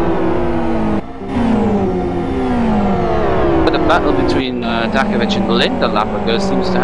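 Racing car engines roar and whine, shifting pitch as they accelerate and downshift.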